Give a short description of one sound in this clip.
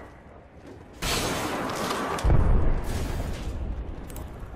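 A heavy metal door slides open with a loud rumble.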